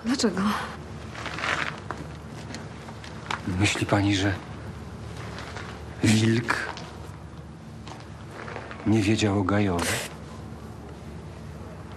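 A man speaks quietly and earnestly, close by.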